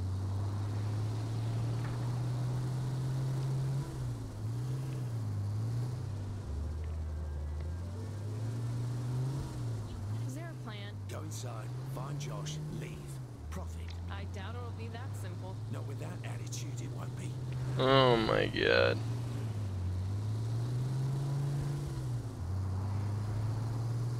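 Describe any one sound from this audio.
An SUV engine drones, rising and falling in pitch as it accelerates and shifts gears.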